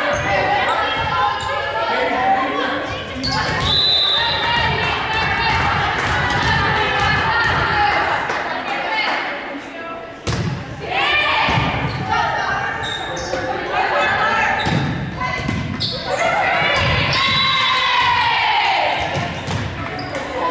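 Young women call out and shout to each other in a large echoing gym.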